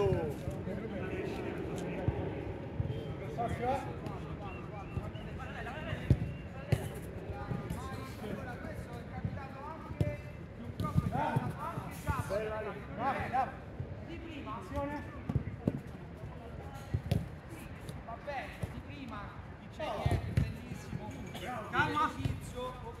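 Men shout and call out to each other outdoors.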